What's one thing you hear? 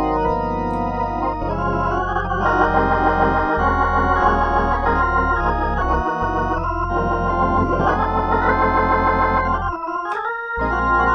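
An organ plays a slow sequence of rich, sustained chords with a deep bass.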